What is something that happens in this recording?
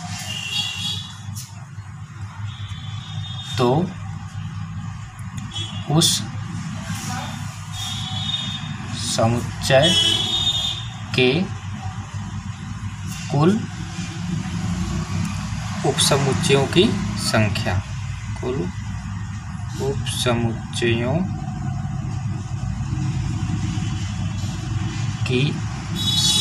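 A pen scratches as it writes on paper.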